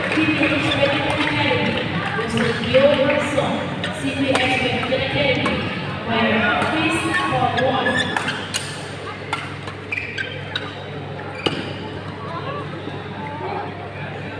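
Players' shoes squeak and thud on the court.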